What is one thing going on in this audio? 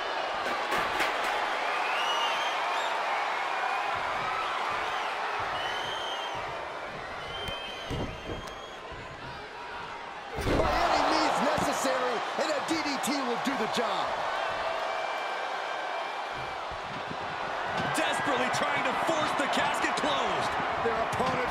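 A large crowd cheers and whistles in a big echoing arena.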